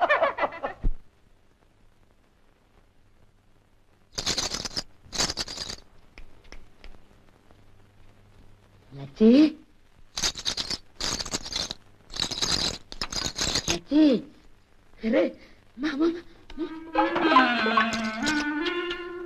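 A young man speaks loudly with animation.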